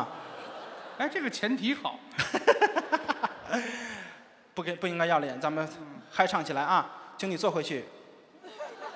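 A middle-aged man talks with animation through a microphone.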